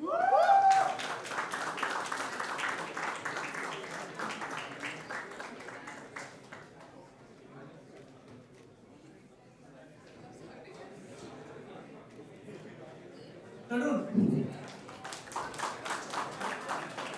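An audience claps in a large hall.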